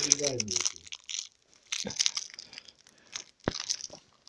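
A candy wrapper crinkles as a dog bites at it.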